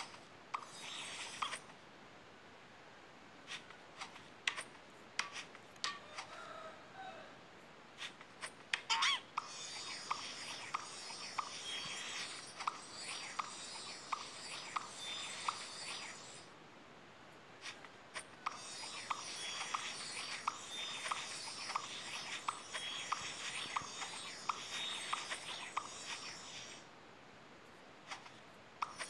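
Short popping sounds come as a cartoon cat catches falling bubbles.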